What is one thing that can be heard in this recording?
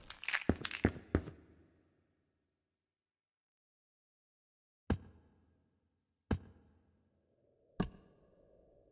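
Hollow knocks sound on wooden ladder rungs.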